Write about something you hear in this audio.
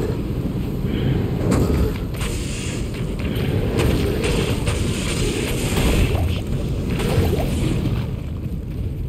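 Magic spells crackle and hit in a fight.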